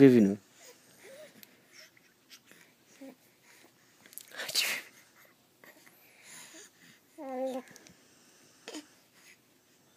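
A baby coos and babbles softly up close.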